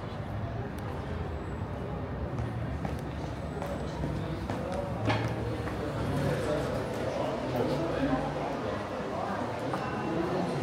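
A crowd murmurs with indistinct chatter, echoing in a large indoor hall.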